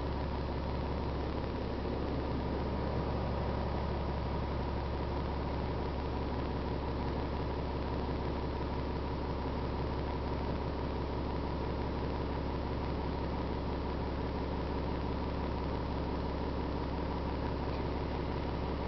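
A bus rattles and rumbles as it drives along.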